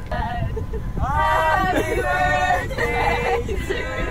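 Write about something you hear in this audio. Young men laugh and shout outdoors.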